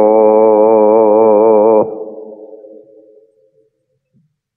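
A man chants a long, wavering held note that stops suddenly and echoes away.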